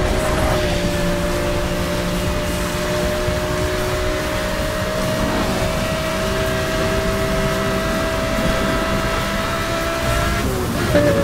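A sports car engine roars at high speed with a steady, slowly rising whine.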